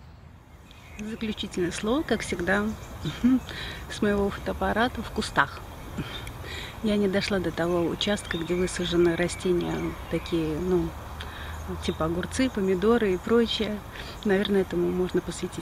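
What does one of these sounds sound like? A middle-aged woman talks calmly and close by.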